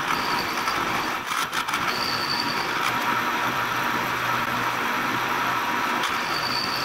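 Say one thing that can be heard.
A milling machine motor hums.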